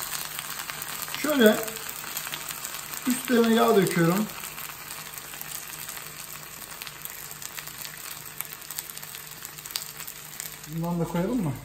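Potato slices sizzle softly in hot oil.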